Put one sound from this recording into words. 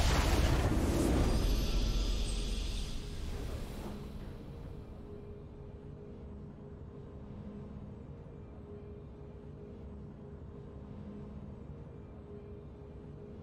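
A triumphant game fanfare plays.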